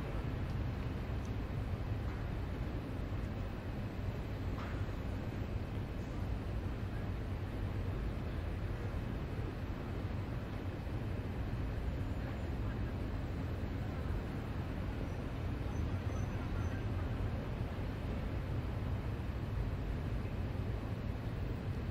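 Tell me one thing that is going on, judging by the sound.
A stationary electric train hums steadily and low.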